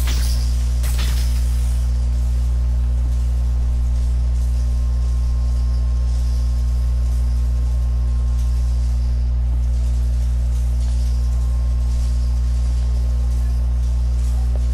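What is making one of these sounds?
Electric sparks crackle and sizzle in short bursts.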